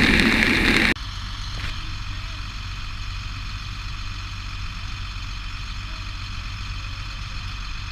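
Water gushes down a chute into a tank truck.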